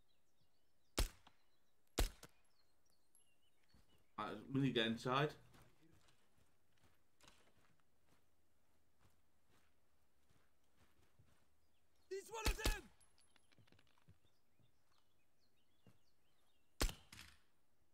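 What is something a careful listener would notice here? A pistol fires single sharp shots.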